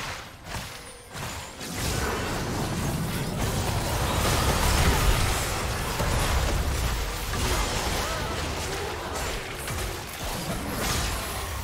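Video game spell effects whoosh and crash during a fight.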